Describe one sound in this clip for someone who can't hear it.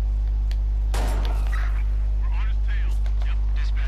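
A shotgun fires in loud blasts.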